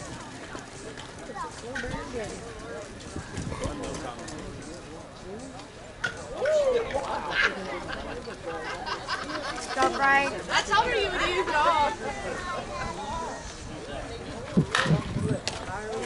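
Men talk and call out across an open field outdoors.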